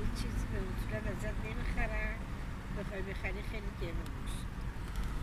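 An elderly woman speaks calmly close by.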